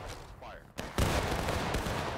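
A rifle fires with a loud bang.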